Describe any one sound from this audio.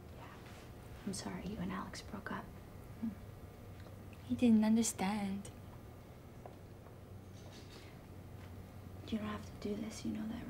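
A second young woman answers quietly.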